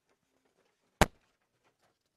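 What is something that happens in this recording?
A hand knocks against a microphone with a sharp thud.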